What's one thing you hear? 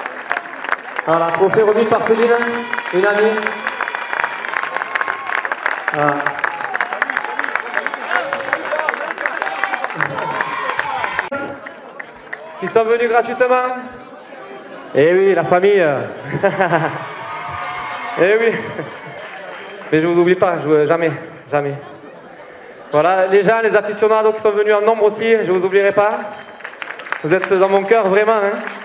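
A man sings loudly through a microphone and loudspeakers, outdoors.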